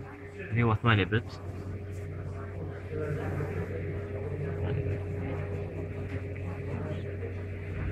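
A pen scratches on paper as lines are drawn.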